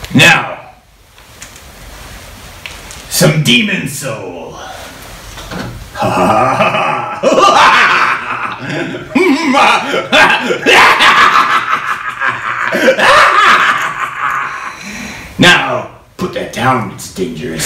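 A middle-aged man talks with animation, close by.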